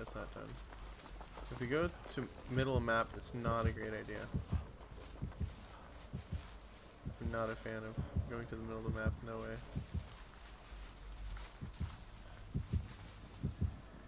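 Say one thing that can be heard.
Tall dry stalks rustle as someone pushes through them.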